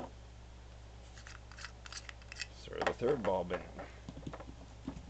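Plastic parts click and rattle as hands handle a lamp fitting.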